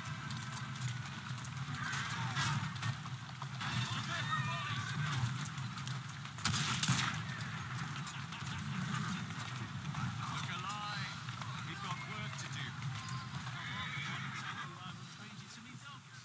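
Horse hooves clop on cobblestones.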